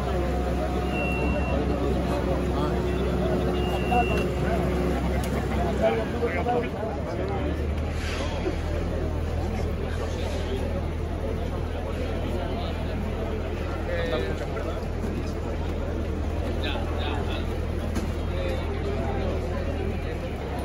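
A crowd of people murmurs outdoors.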